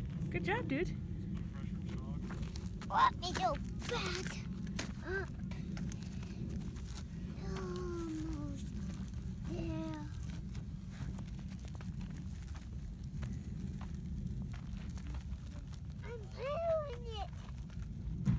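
A young child talks in short bursts nearby.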